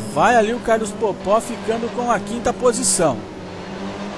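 A racing car engine revs up and down sharply through quick gear changes.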